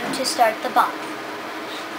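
A young girl speaks briefly and close by.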